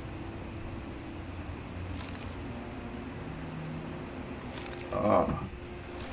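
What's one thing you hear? A parchment page rustles as it is turned.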